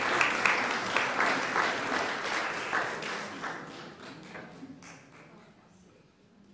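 An audience applauds in a room, then the clapping fades away.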